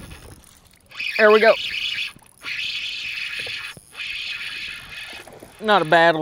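A fishing reel whirs as line is reeled in.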